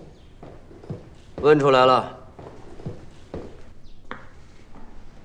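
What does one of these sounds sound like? Footsteps thud on a floor.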